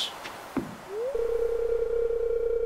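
A short chime sounds as a message pops up.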